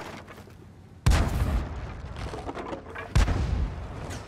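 A tank cannon fires with a sharp, heavy boom.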